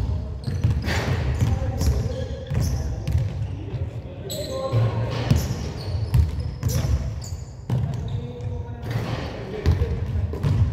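Sneakers squeak on a wooden court in a large echoing hall.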